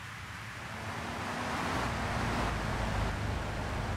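Several car engines rumble as the cars approach.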